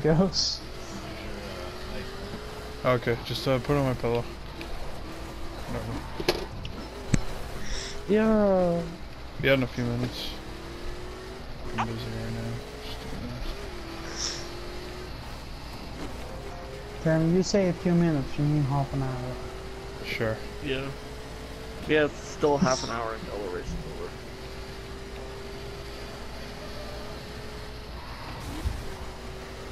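A racing car engine roars and climbs in pitch, dropping back with each gear change.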